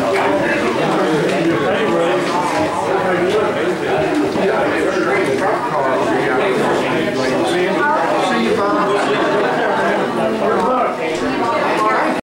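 Many men and women chatter at once in a large echoing room.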